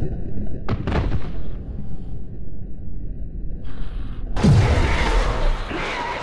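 A large creature growls deeply and menacingly.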